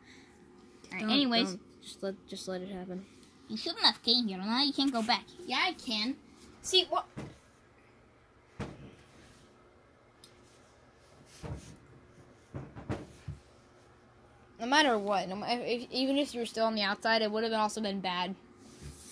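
A young child talks playfully in a high voice close by.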